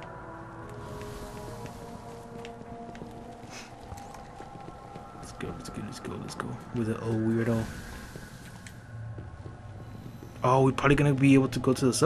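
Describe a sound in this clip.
Footsteps tread across a rubble-covered floor.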